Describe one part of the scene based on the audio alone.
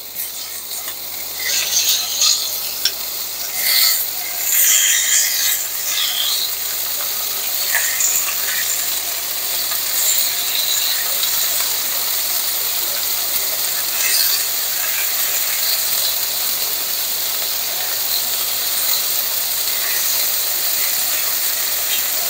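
Tongs click and scrape against a pan.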